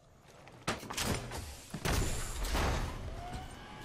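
A heavy metal hatch clanks and hisses open.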